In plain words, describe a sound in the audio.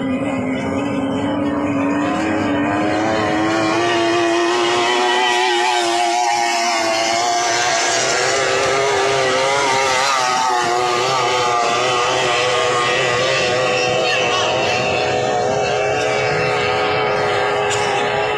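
A racing boat engine roars loudly at high speed.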